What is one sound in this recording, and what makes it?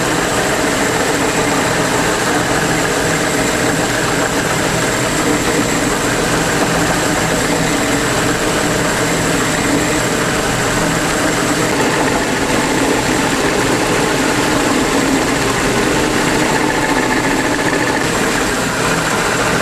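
A meat grinder motor hums steadily.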